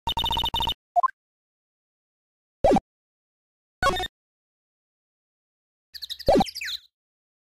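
Short electronic clicks and chimes sound a few times.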